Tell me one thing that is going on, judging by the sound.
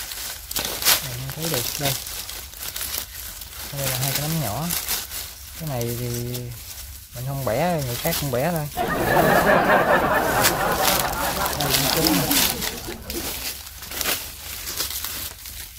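Dry leaves rustle and crackle as a hand pushes through them.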